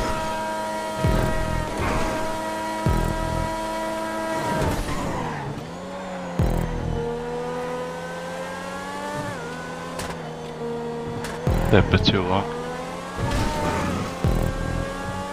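Tyres thump and knock over kerbs.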